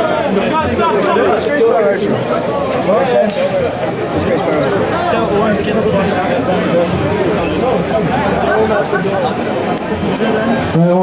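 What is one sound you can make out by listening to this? A man talks loudly and with animation into a microphone, heard through loudspeakers in a large echoing hall.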